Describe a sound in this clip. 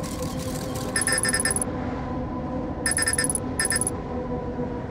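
Electronic beeps and bursts of static sound briefly.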